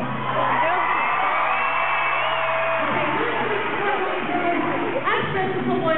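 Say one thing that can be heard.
A young woman sings through a microphone and loudspeakers.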